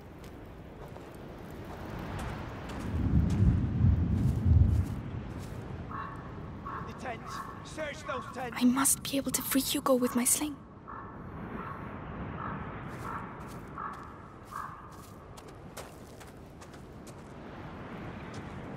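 Footsteps crunch softly on grass and gravel.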